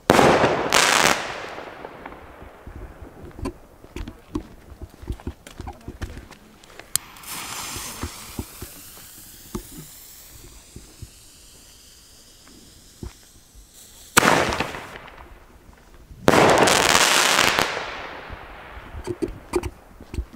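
Firework sparks crackle in the air.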